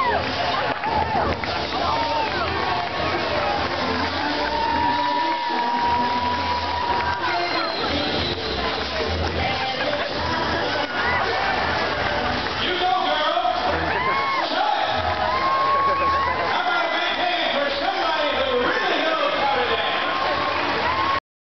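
A crowd chatters and cheers across an open-air stadium.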